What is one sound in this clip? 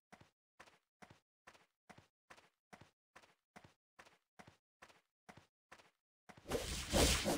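Soft footsteps tap at an even pace.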